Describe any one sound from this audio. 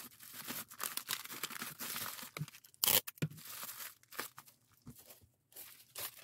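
Bubble wrap and plastic wrapping rustle and crinkle close by.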